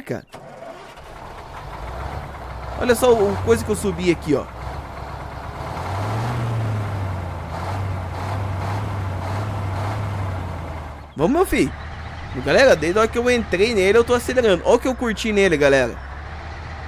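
A heavy diesel engine rumbles low and steady.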